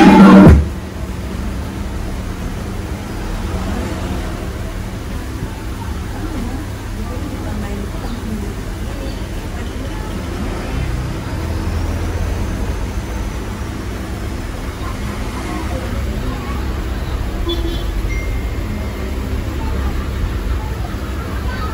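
Music plays loudly through a loudspeaker with a heavy bass.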